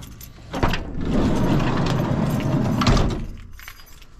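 A van's sliding door rumbles open.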